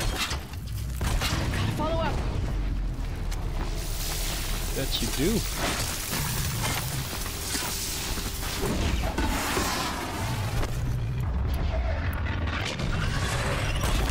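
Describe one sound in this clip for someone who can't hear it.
A bowstring twangs as arrows are shot.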